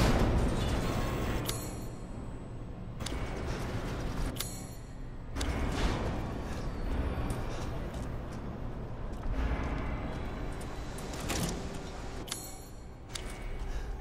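A soft menu swish sounds as a map opens.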